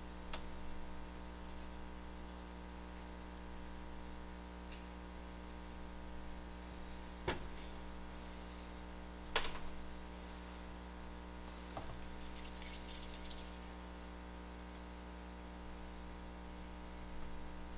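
A man scrapes and smooths a soft clay slab with a tool.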